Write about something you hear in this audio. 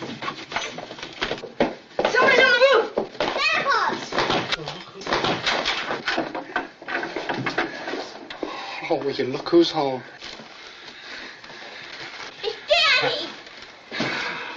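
Children shout and squeal with excitement.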